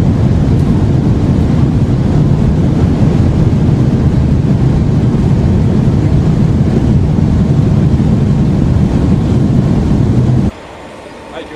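A loud, steady low roar fills the inside of a fast-moving train carriage.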